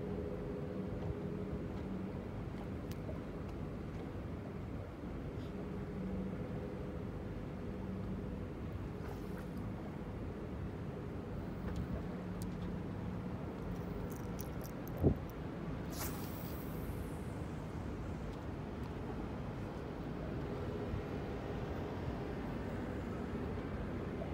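Small waves lap steadily at the shore outdoors.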